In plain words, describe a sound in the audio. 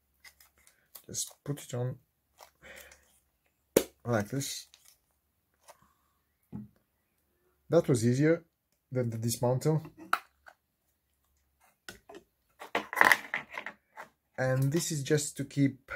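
Plastic parts click and rattle as hands twist them apart.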